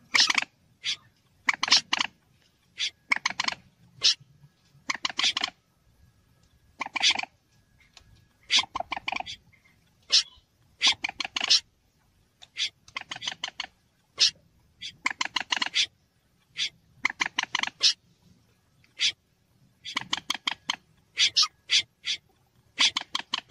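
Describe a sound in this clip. A bird calls with sharp, rapid clucking bursts, over and over.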